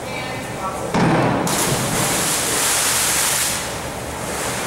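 A person plunges into water with a loud, echoing splash.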